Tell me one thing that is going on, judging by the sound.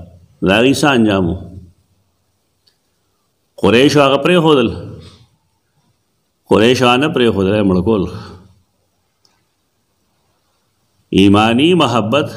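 An elderly man speaks calmly into a close microphone, reading out in short phrases with pauses between them.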